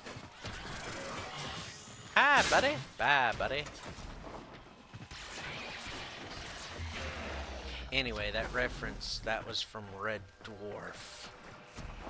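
Energy blasts zap and crackle.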